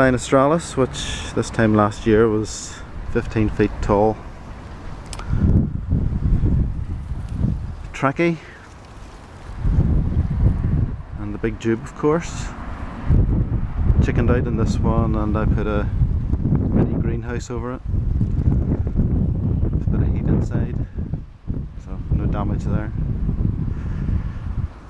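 Gusty wind blows outdoors, rustling through plants.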